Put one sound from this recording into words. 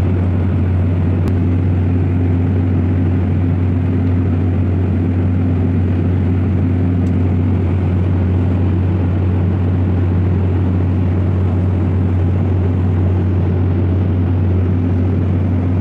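Jet engines roar with a steady low drone inside an airliner cabin.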